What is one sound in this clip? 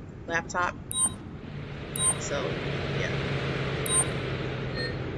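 Short electronic chimes sound a few times.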